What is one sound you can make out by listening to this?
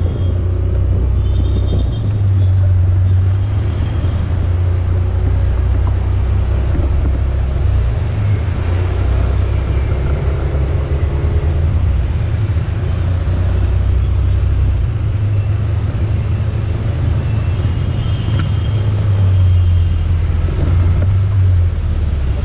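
Traffic drones steadily along a busy road.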